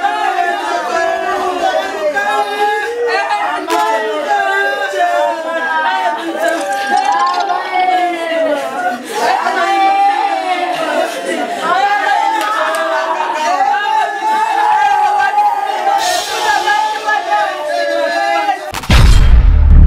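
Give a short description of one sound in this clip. A woman cries out and wails loudly and tearfully.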